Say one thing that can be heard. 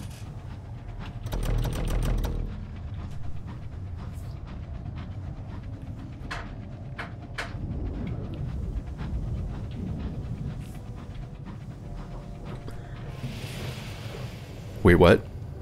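A small submarine's engine hums low and steady underwater.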